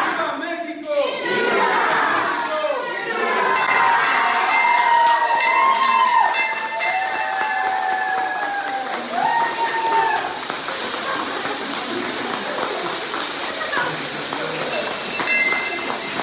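A bell rings overhead.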